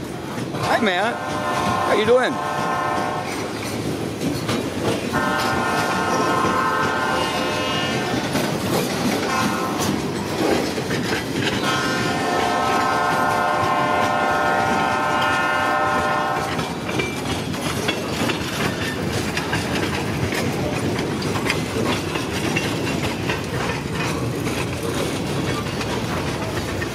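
A freight train rolls past with a steady rumble and clatter of wheels on rails.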